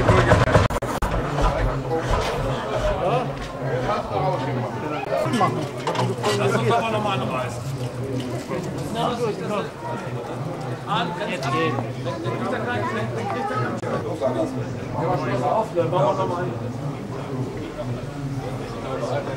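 Men talk casually nearby, outdoors.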